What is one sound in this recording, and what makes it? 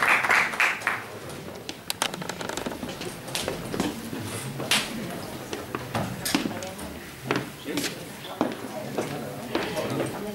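Instruments and chairs knock and clatter softly in a large echoing hall.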